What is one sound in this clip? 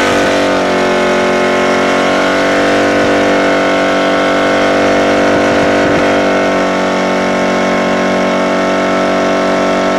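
Tyres screech as they spin on wet pavement.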